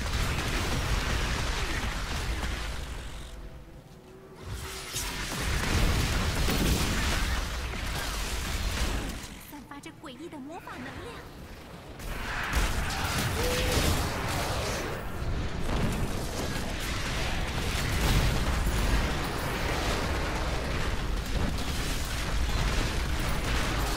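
Fiery blasts and crackling effects from a video game rumble loudly.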